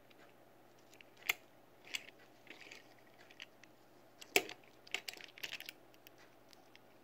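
A toy truck clicks and taps as fingers handle and turn it.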